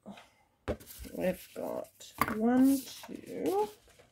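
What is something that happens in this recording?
A piece of cardboard is set down on a flat surface.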